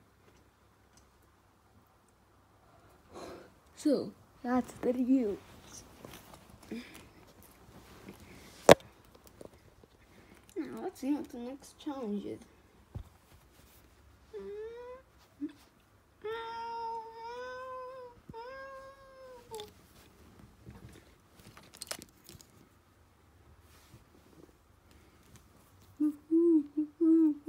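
Small plastic toys rustle softly against soft fabric.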